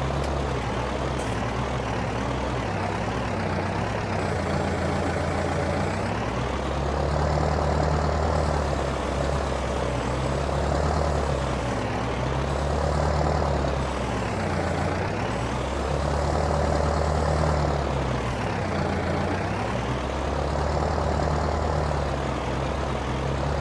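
A tractor engine rumbles steadily, rising and falling as it revs.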